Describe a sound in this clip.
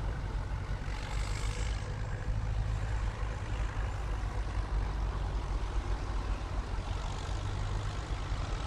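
Tractor engines chug along a road at a distance.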